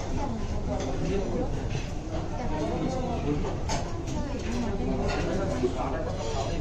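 A crowd of guests chatters indoors.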